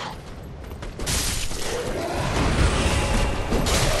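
A crackling burst of lightning magic rings out.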